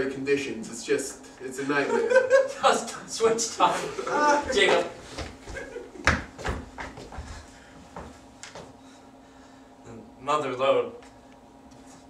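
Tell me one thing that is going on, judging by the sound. A young man speaks loudly and animatedly on a stage.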